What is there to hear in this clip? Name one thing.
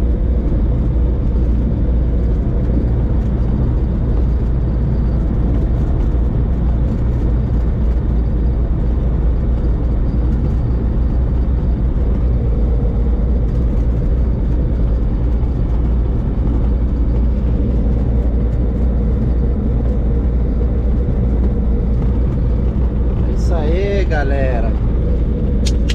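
A small propeller plane's engine roars steadily at full power.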